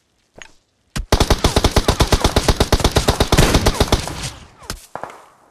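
Rapid gunfire rattles in a long burst.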